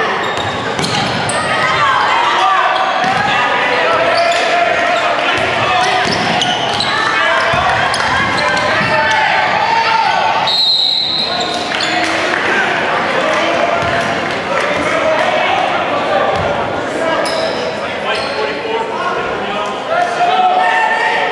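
A crowd cheers and shouts loudly in a large echoing gym.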